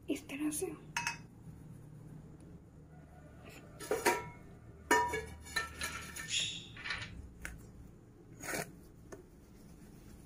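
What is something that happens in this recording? Fingers knock against a metal bowl.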